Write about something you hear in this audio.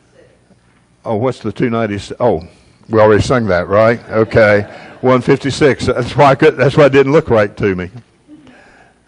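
A middle-aged man preaches with animation through a microphone in an echoing hall.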